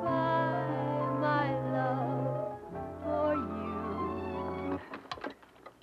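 Orchestral music plays from a record player, then stops abruptly.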